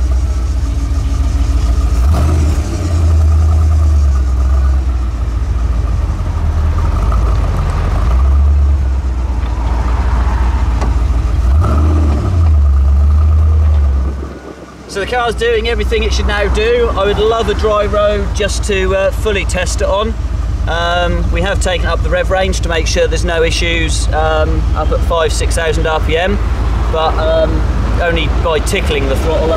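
A car engine rumbles and revs up and down.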